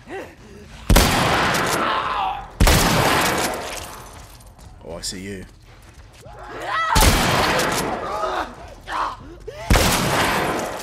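Shotgun blasts boom loudly with a ringing echo.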